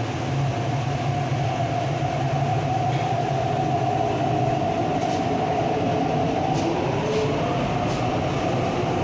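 An electric commuter train hums and rumbles along the track, heard from inside the carriage.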